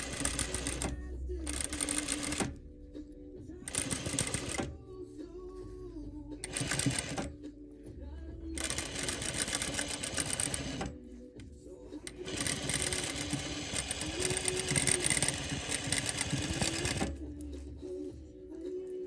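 A sewing machine runs in quick bursts, stitching with a fast rattling hum.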